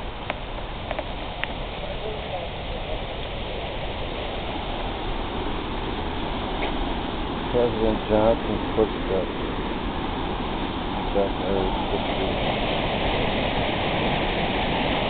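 A waterfall roars steadily nearby, growing louder toward the end.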